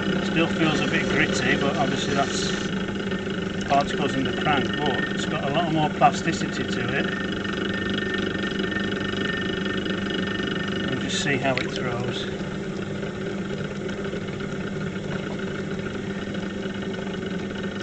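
A potter's wheel hums steadily as it spins.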